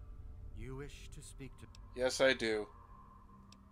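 A young man speaks calmly and clearly, close up.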